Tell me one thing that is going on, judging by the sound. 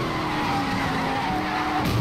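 Tyres screech as a car drifts.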